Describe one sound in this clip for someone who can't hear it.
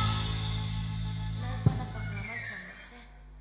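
A group of children sings together through microphones.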